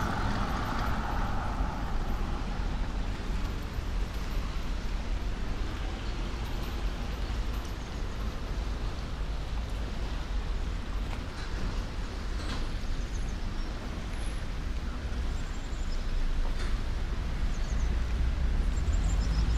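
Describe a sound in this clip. A river rushes steadily below.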